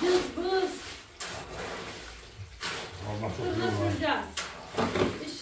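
A shovel scrapes and scoops wet cement.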